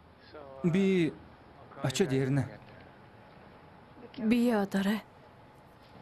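A middle-aged man and a young man talk calmly close by.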